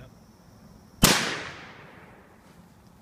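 A handgun fires a single loud shot outdoors, ringing out and fading.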